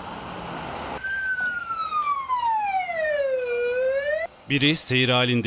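A siren wails, falling and rising in pitch.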